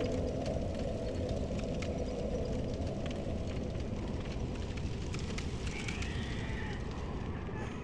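Armoured footsteps run quickly across a stone floor.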